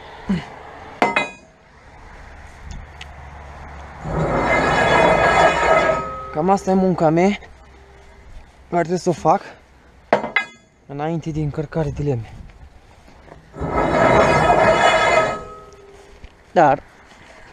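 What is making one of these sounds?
Metal poles clank against each other.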